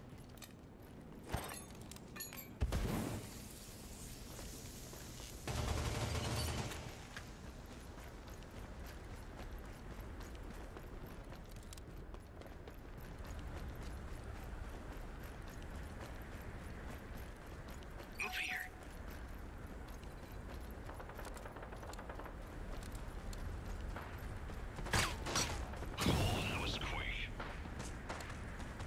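Footsteps patter steadily as a person runs.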